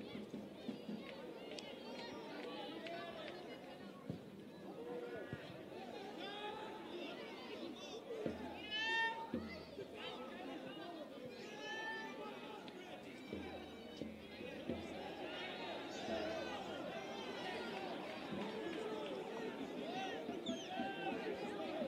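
A crowd of spectators murmurs and shouts outdoors.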